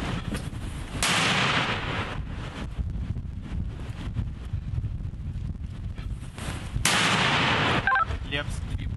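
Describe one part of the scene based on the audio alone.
A mortar fires with loud booming blasts outdoors.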